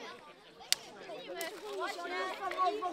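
Children shout and chatter excitedly outdoors.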